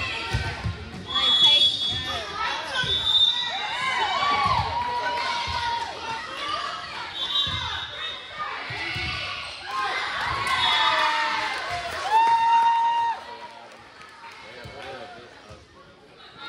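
Young women players call out and shout to each other in a large echoing gym.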